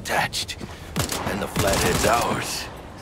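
A gun fires several quick shots.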